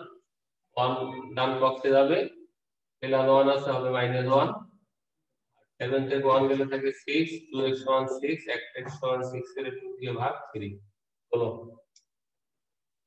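A man explains calmly and clearly, close by, as if teaching.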